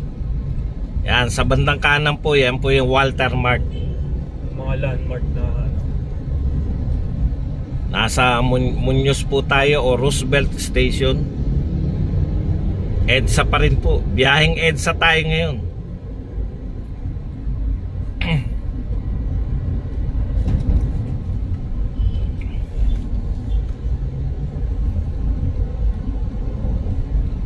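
Traffic rumbles along a busy road.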